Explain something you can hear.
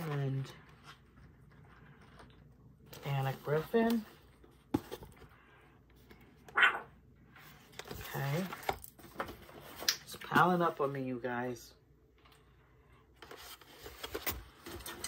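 Stiff paper packets rustle and tap as they are handled.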